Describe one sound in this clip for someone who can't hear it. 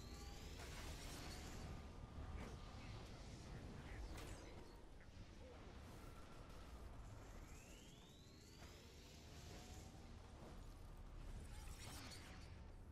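Game spell effects whoosh and crackle throughout a battle.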